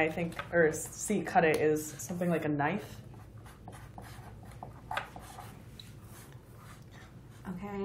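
Pens scratch on paper.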